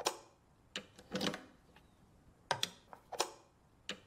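A cable plug clicks into an amplifier's jack.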